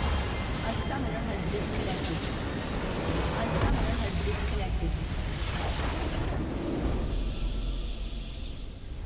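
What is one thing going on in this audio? A game's base explodes with loud crashing blasts.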